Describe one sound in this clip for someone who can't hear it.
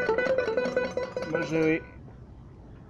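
A small stringed instrument is plucked in a quick melody.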